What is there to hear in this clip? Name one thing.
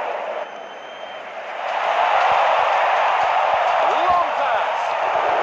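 A large crowd roars steadily, swelling louder.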